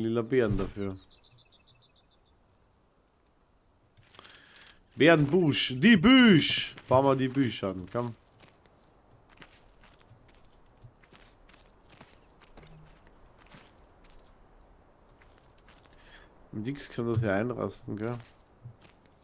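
A man talks animatedly into a close microphone.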